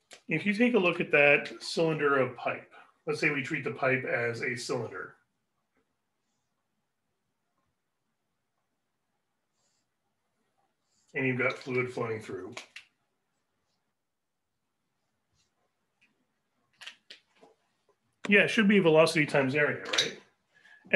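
A man talks calmly and clearly close to the microphone, pausing now and then.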